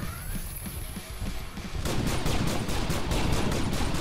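Wooden crates burst and splinter.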